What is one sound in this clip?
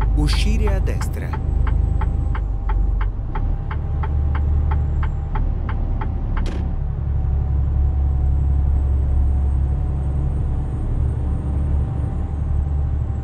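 A truck engine drones steadily with a deep rumble.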